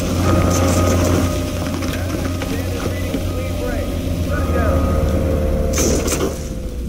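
A cutting tool buzzes loudly with crackling sparks.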